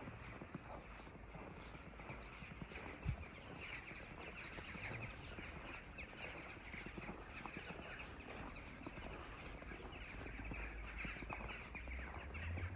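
Footsteps crunch and squeak on packed snow.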